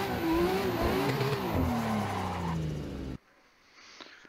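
A racing car engine revs loudly and shifts pitch as it speeds along.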